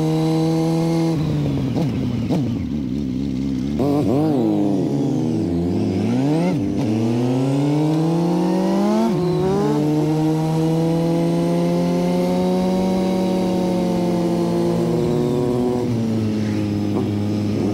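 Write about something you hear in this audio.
A motorcycle engine hums up close, revving up and down as gears change.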